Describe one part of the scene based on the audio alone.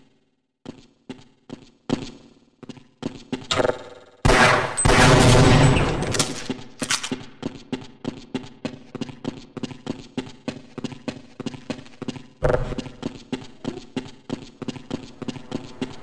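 Footsteps clank steadily on a hard floor.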